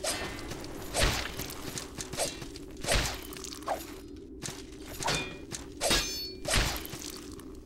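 Sword strikes land with heavy thuds.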